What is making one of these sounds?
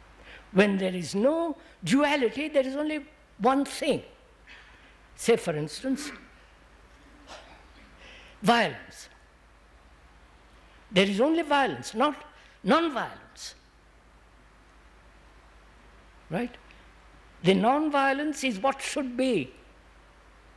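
An elderly man speaks calmly and deliberately into a microphone, with long pauses.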